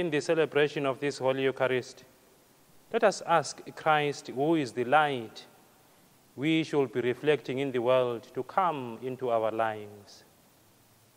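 A man chants a prayer in a slow, sung voice through a microphone, echoing slightly.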